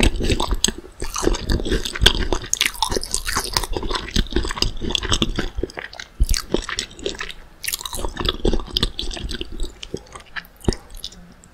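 A young woman makes wet mouth and lip sounds close to a microphone.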